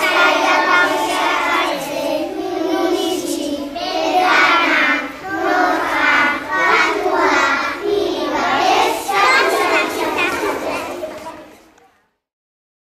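Young children sing a rhythmic song together.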